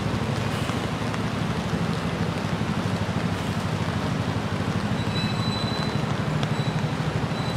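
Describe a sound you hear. A bus engine idles nearby with a steady low rumble.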